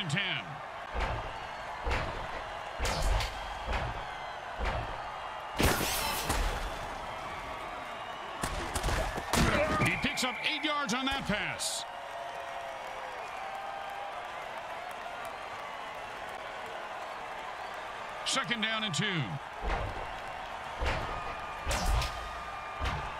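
Armoured players thud and crash into each other in heavy tackles.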